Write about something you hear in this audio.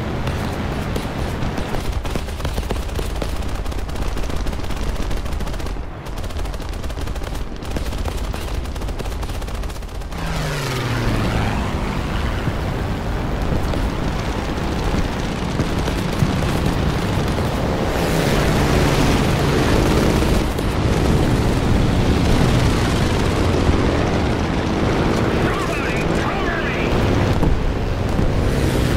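A propeller plane's engine drones loudly and steadily.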